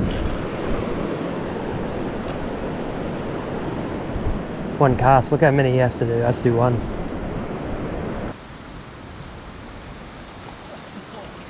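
A river flows and ripples close by.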